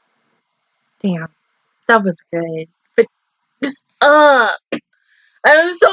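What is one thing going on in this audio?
A young woman speaks animatedly close to a microphone.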